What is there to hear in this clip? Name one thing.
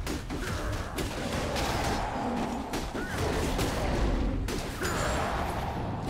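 Fighting sounds of spells and weapon hits clash rapidly in a video game.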